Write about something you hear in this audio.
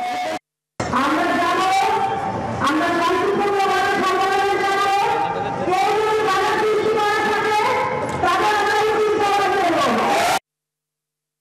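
A middle-aged woman speaks forcefully into a microphone through a loudspeaker, outdoors.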